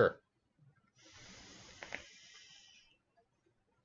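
A man draws a long breath through a vape device, with a faint hiss and crackle.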